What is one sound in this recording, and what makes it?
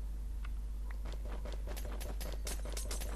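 Blocks break with quick, crunching taps.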